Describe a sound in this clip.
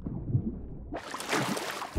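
Water splashes as a swimmer breaks the surface.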